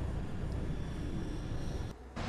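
A young woman yawns loudly close by.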